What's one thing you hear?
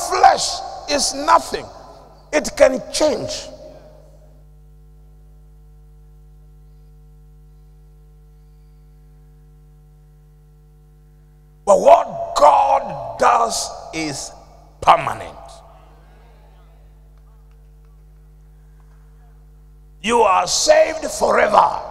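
An elderly man preaches into a microphone with animation, in bursts with long pauses, in a reverberant hall.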